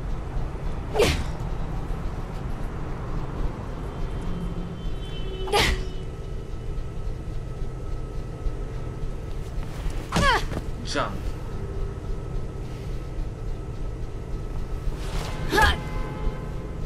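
Sharp whooshes of punches and kicks cut through the air now and then.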